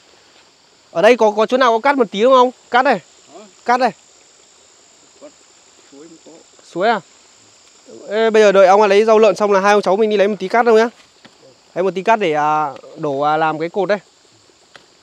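Two young men talk calmly nearby.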